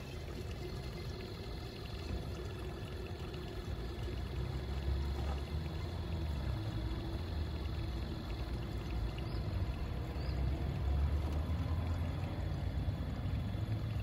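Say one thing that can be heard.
A small electric pump hums steadily.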